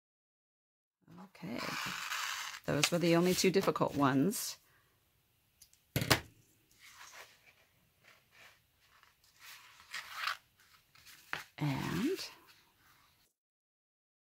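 Craft foam rustles and creaks as it is handled.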